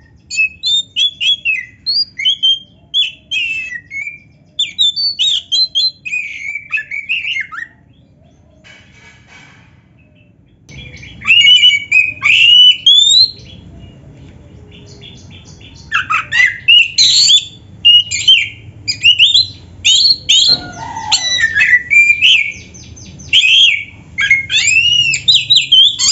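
A caged bird sings loud, varied whistling phrases close by, with short pauses.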